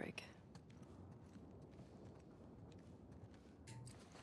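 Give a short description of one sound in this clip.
Footsteps creak softly on a wooden floor.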